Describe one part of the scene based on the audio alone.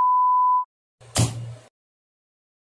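A pen is set down on paper with a soft tap.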